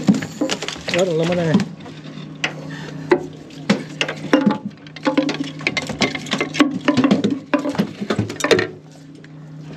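Hands knock and bump against a boat's hard deck.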